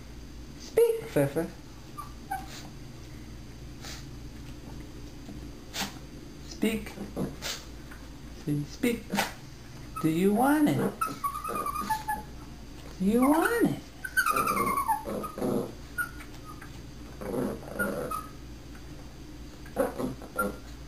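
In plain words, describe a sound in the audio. Small dogs whine and howl in high, wavering cries.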